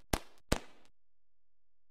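Confetti bursts with two sharp pops.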